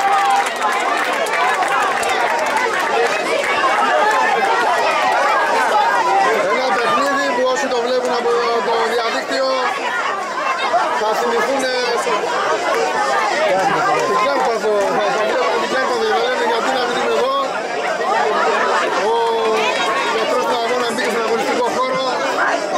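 Many men talk and shout outdoors at a distance.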